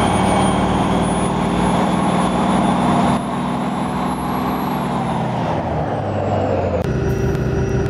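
A bus engine hums steadily as the bus drives, then winds down.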